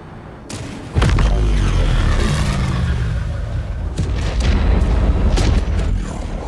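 A deep, loud rumble booms and crackles.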